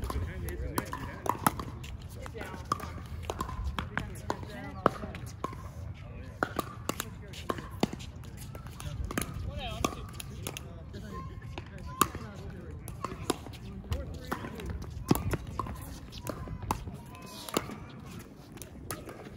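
Paddles hit a plastic ball with sharp pops.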